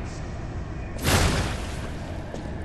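A heavy blade strikes with a whoosh and a thud.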